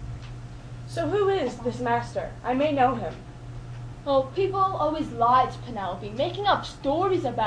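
A young man speaks expressively, close by.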